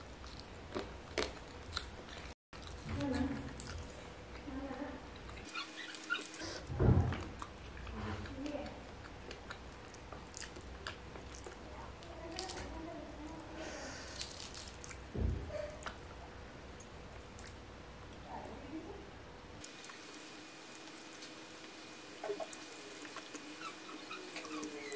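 A young man chews and smacks his lips loudly, close by.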